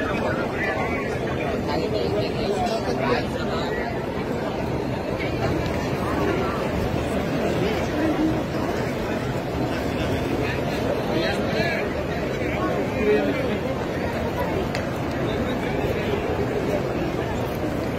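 Many footsteps shuffle on a stone pavement.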